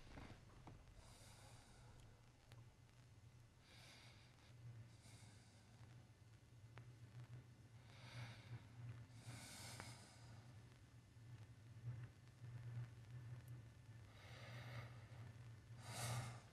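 A man breathes heavily and slowly nearby.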